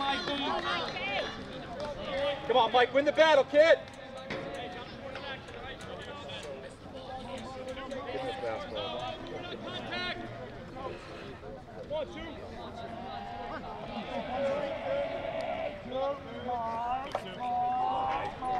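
A crowd of men and boys chatters and calls out from the sidelines outdoors.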